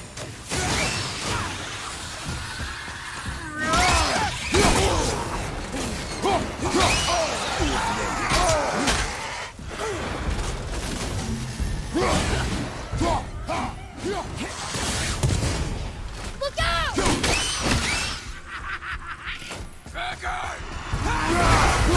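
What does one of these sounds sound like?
Metal axe blows strike and clang.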